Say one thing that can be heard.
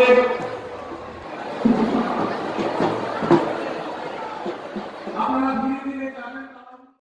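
A crowd of men talks and shouts excitedly close by.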